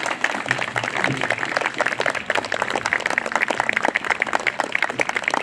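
A small audience claps steadily outdoors.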